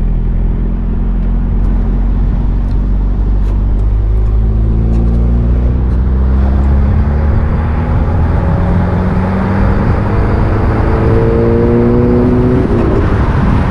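A car engine revs up, rising in pitch as it accelerates and shifts gear.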